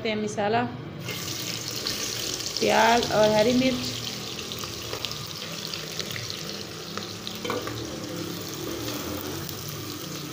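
Chopped vegetables drop into hot oil and sizzle steadily.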